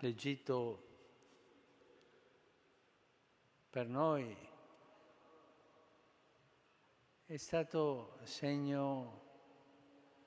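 An elderly man reads out slowly through a microphone, with long pauses.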